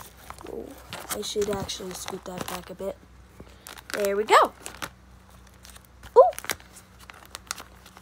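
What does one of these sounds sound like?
Plastic sleeves crinkle and rustle as a hand turns and touches them.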